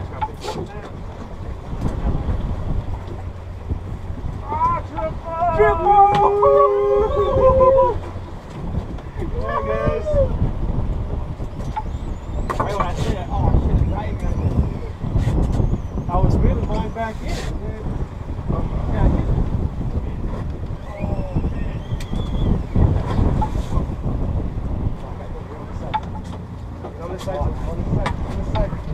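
Wind and waves rush against a moving boat outdoors.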